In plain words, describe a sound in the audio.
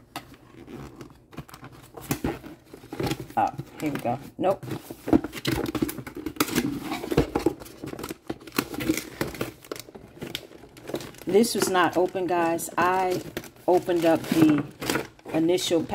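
A cardboard box scrapes and bumps as it is handled.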